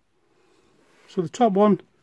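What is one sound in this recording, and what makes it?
A fabric strap rustles as it is handled.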